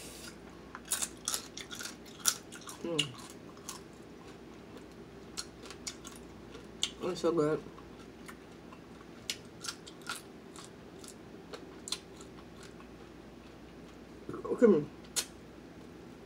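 A woman slurps and chews loudly.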